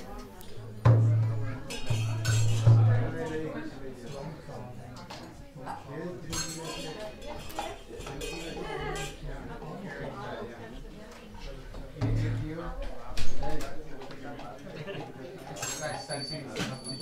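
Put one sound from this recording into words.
Several men and women talk and murmur nearby.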